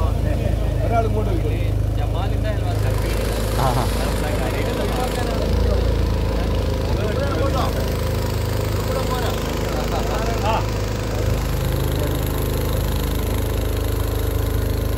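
A boat motor hums steadily on the water.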